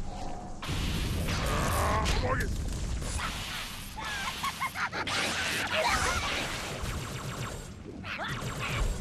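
An electric energy blast crackles and hisses loudly.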